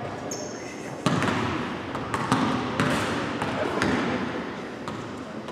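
A basketball bounces on a hardwood floor, echoing in a large hall.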